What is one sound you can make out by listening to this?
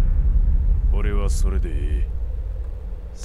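A man speaks gruffly in reply.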